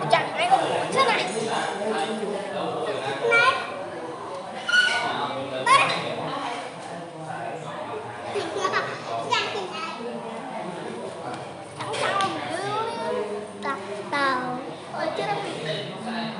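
Several men and women chat at a distance in a room.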